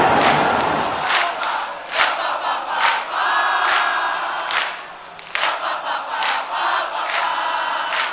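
A large crowd claps rhythmically in an open stadium.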